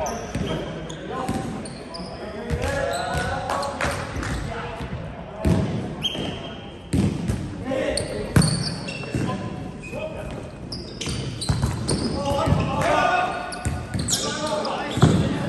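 A volleyball is struck with hands in a large echoing gym.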